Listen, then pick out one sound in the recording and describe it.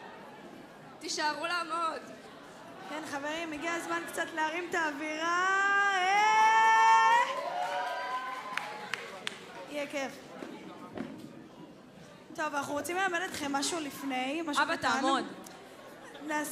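A young woman sings into a microphone through loudspeakers in a hall.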